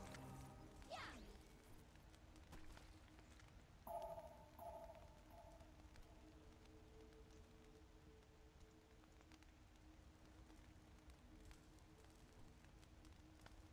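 Soft game music with quiet chimes plays throughout.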